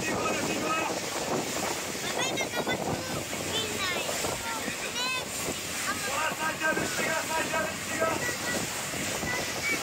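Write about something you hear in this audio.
Water ripples gently.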